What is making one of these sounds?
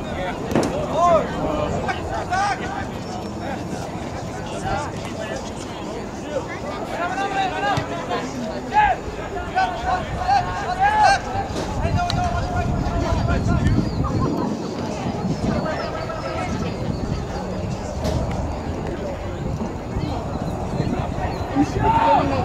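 Young men shout and call out across an open field.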